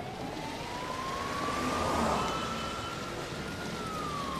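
Fountain jets splash and spray water steadily.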